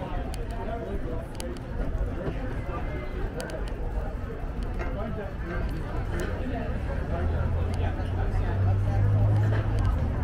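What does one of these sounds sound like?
A crowd of diners chatters at outdoor tables nearby.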